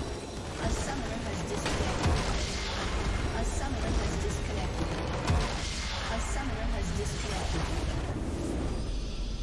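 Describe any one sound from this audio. A large structure explodes with a deep rumbling blast.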